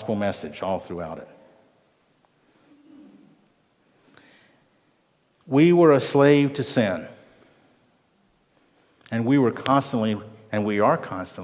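An elderly man speaks with emphasis, heard through a microphone, with pauses.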